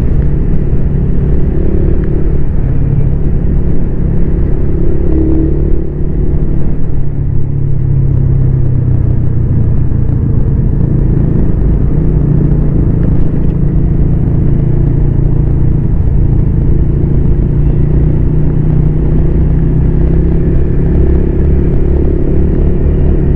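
Wind rushes past in a low, steady roar.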